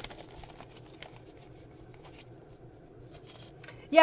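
A fabric pouch rustles as hands rummage in it.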